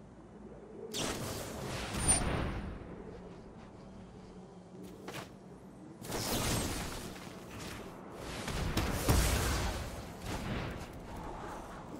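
Game sound effects swoosh and chime as cards are played.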